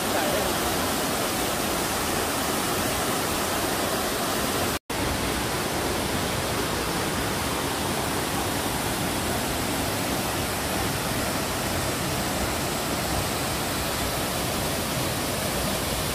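A waterfall roars steadily nearby.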